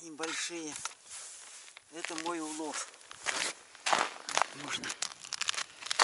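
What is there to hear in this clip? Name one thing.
Snow crunches as a man shifts his feet.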